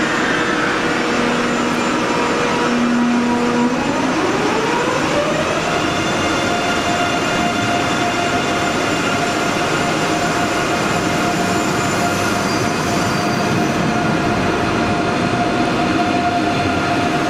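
A train rumbles along the rails.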